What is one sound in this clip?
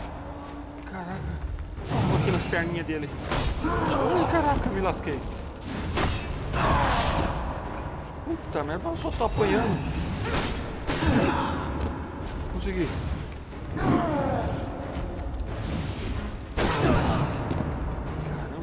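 Broken stone chunks clatter and scatter across a hard floor.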